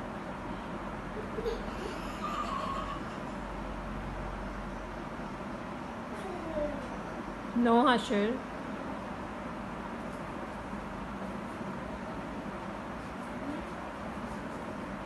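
A toddler coos softly.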